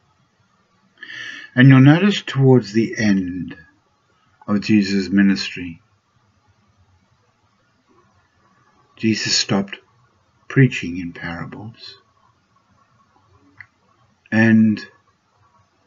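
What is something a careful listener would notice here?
An elderly man speaks calmly in short phrases, heard through a webcam microphone.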